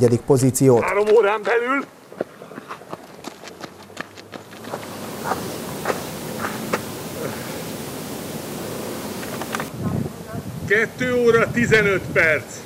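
An elderly man speaks with animation, close by.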